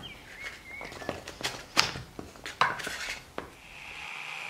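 Chunks of potato tumble and knock into a plastic container.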